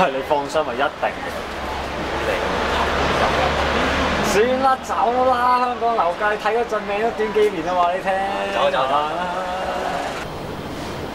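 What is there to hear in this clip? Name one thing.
A second young man speaks cheerfully up close.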